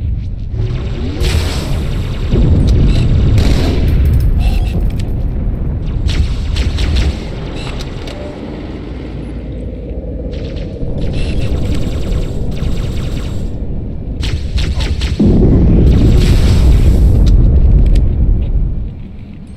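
Energy blasts burst with a loud crackling roar.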